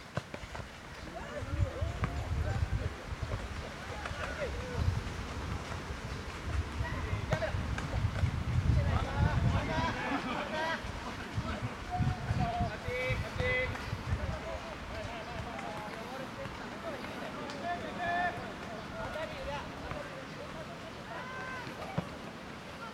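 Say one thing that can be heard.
Young men shout to each other across an open field, at a distance.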